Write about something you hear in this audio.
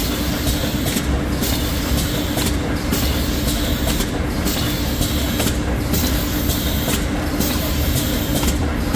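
A conveyor belt machine runs with a steady hum.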